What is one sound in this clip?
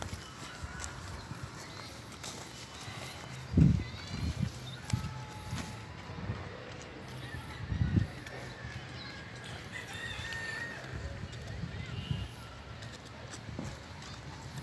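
A small child's footsteps crunch softly on dry, cracked dirt outdoors.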